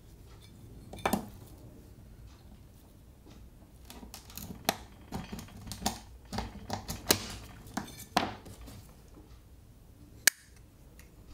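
Small glass tiles click and tap as they are set down one by one.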